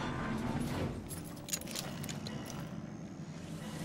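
Gloved hands clank on a metal ladder as someone climbs.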